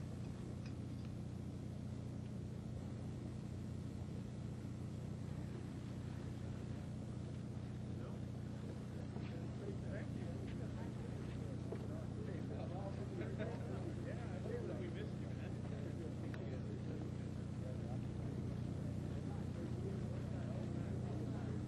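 A jet engine hums steadily nearby.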